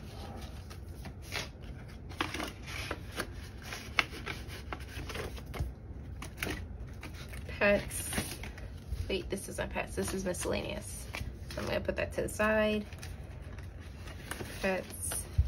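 Paper rustles and crinkles as pages are handled.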